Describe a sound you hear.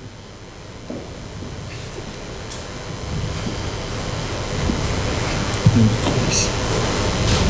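Footsteps echo across a large hall.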